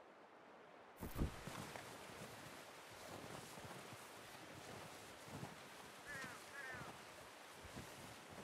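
Footsteps crunch slowly through deep snow.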